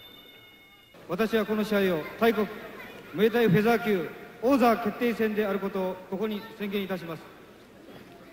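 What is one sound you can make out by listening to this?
A man reads out through a microphone and loudspeakers in a large hall.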